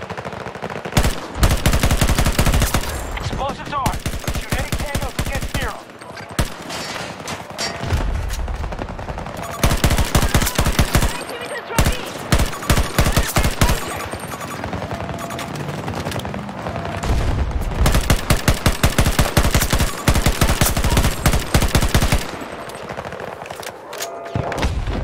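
Rapid automatic gunfire rattles in bursts, close by.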